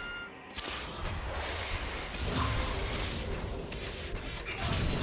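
Fantasy battle effects whoosh, crackle and clash in quick bursts.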